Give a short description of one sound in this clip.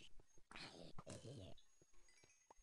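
A video game zombie groans as it is struck.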